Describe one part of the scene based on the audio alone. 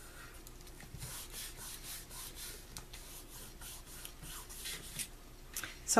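Hands rub and slide across stiff card.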